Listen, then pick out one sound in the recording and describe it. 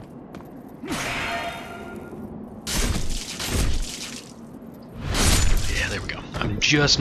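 Swords clang against a metal shield.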